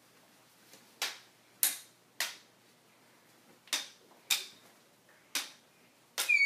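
Toy swords clack together in a play fight.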